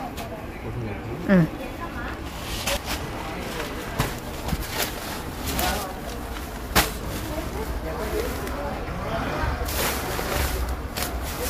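Fabric rustles and swishes as it is handled and spread out.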